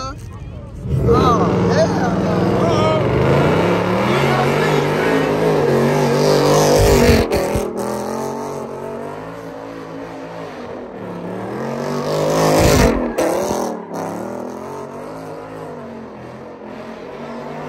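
A car engine revs loudly, rising and falling.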